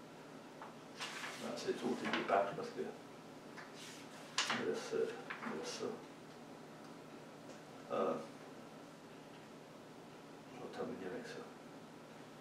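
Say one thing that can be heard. A middle-aged man reads aloud calmly, in bursts with pauses.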